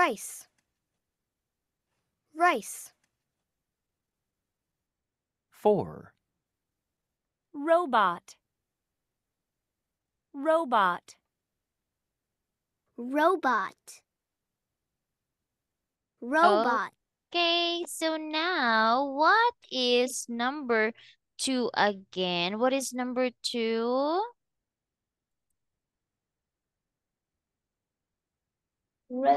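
A young woman speaks slowly and clearly through an online call, saying short words with long pauses between them.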